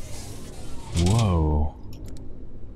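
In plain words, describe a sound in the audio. A heavy stone sphere slides open with a loud grinding rumble.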